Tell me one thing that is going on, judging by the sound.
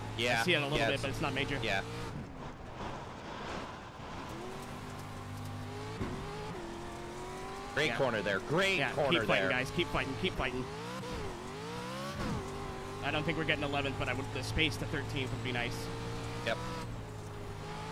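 A race car engine drones and revs steadily.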